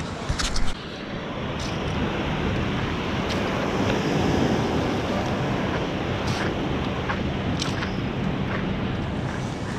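Waves wash gently onto the shore.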